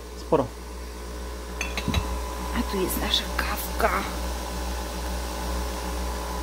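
A thin stream of coffee pours and splashes into a metal cup.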